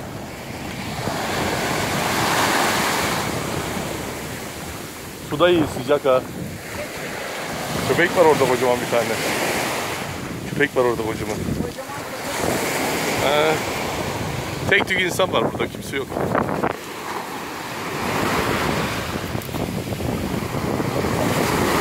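Small waves wash in and break over a pebble beach.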